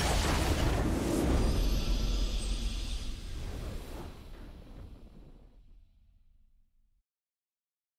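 A triumphant victory fanfare plays and fades away.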